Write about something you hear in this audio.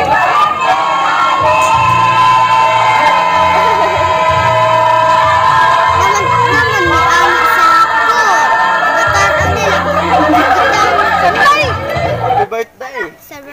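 A group of men and women sing together through a small loudspeaker.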